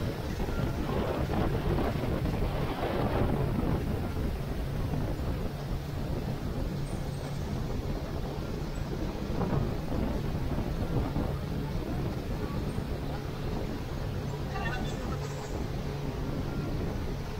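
Water splashes and hisses in the boat's wake.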